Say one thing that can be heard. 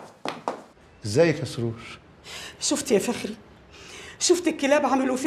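A woman speaks firmly nearby.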